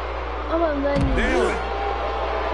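A wrestler's body slams down with a heavy thud.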